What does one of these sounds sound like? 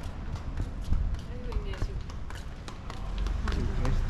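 Footsteps of two passersby tap on stone paving close by.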